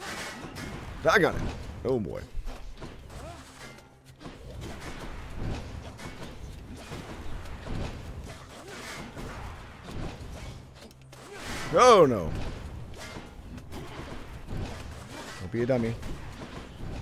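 Swooshing and ringing combat effects sound from a video game.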